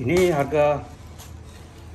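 A foam box scrapes softly as a hand moves it.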